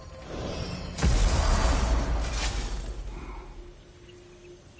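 A loud rushing blast roars and slowly fades.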